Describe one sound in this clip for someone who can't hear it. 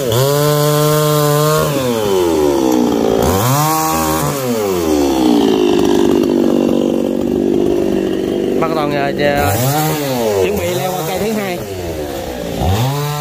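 A chainsaw engine revs up and down loudly.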